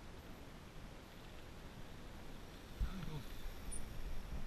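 Bicycle tyres crunch on gravel as a bike rolls closer.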